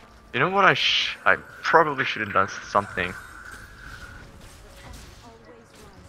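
Magic blasts and sword clashes of a fantasy battle burst in quick succession.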